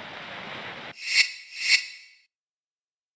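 Two short electronic menu tones chime.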